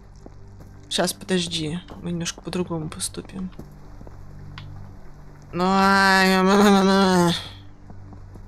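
A young boy talks with animation into a headset microphone.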